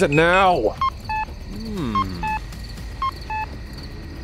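A phone beeps with short tones.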